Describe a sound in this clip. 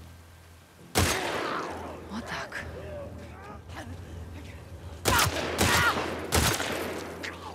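A rifle fires loud shots.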